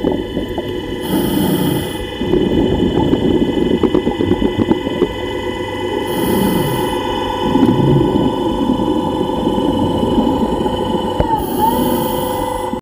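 Air bubbles rush and hiss in short bursts.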